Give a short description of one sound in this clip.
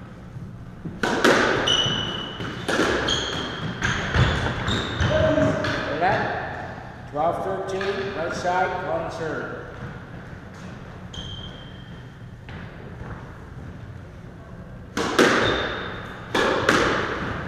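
A squash ball smacks hard against the walls, echoing around the court.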